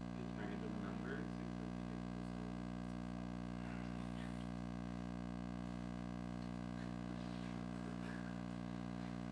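A man speaks calmly and clearly, heard through a microphone.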